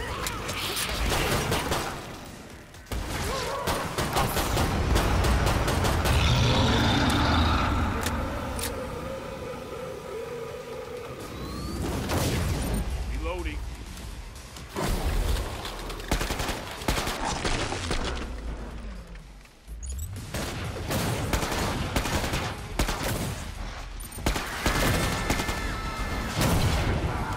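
Monsters growl and shriek.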